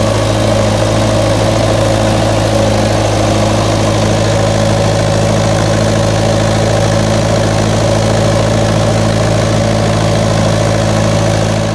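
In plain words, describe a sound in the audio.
An old tractor's diesel engine chugs loudly and steadily close by.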